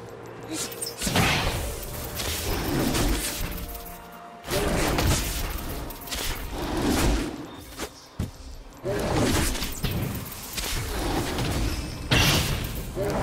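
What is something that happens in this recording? Game combat sounds of blows and magic spells clash loudly in bursts.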